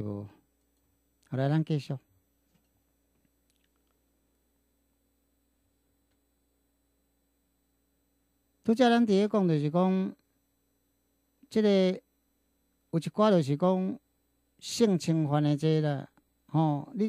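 An older man speaks calmly into a microphone, close by, with long pauses.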